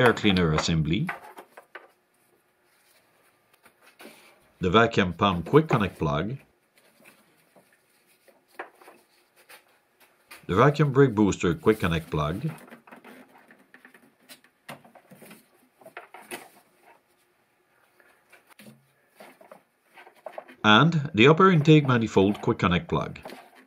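Rubber hoses and plastic parts click and rustle as they are handled.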